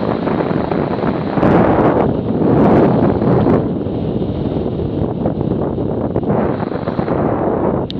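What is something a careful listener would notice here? Wind roars loudly past a moving motorcycle.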